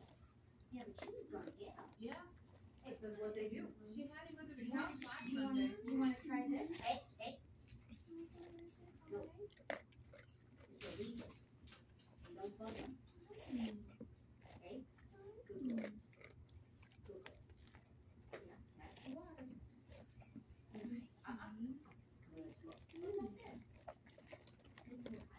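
A dog sniffs and licks close by.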